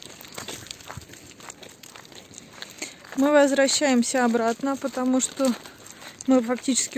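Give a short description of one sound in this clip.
Paws and footsteps crunch on loose gravel.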